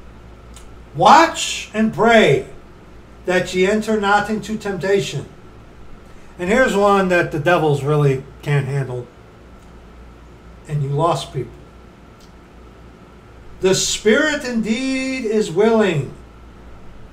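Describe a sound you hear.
A middle-aged man speaks calmly and close to the microphone, with pauses.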